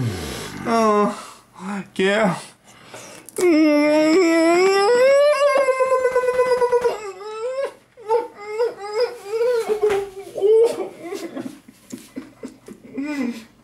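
A man moans and hums loudly with pleasure, close by.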